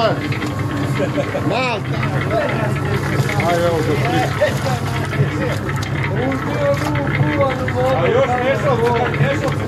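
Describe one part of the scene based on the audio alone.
A small mixer motor hums steadily.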